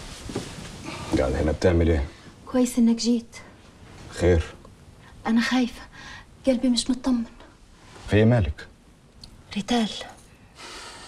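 A woman speaks in a tense, upset voice nearby.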